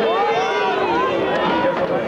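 An elderly man shouts with animation close by.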